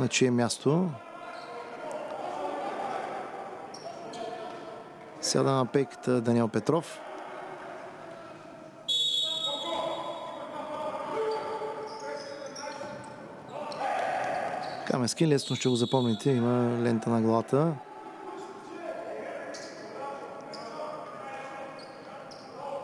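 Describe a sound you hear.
Spectators cheer and chatter in an echoing hall.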